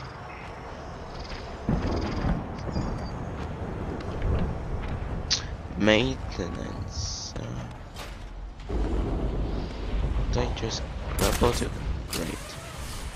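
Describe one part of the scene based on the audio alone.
A low rumbling echoes.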